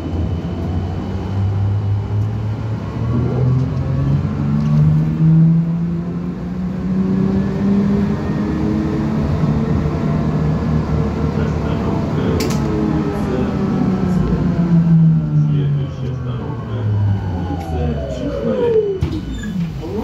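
A vehicle's engine hums from inside, rising in pitch as it speeds up and falling as it slows.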